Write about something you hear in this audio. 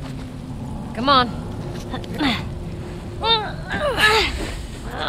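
A young girl speaks nearby.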